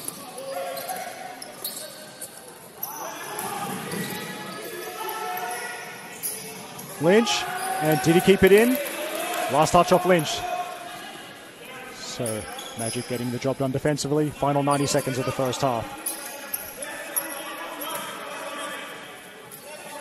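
A crowd of spectators murmurs steadily in the background.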